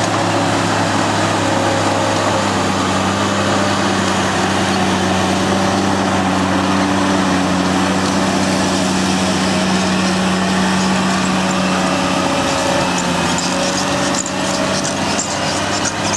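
Dirt and clods scrape and rattle as a scraper blade cuts into the ground.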